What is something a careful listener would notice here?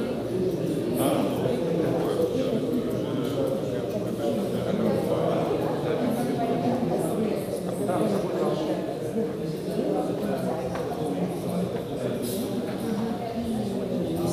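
Several men talk with each other nearby.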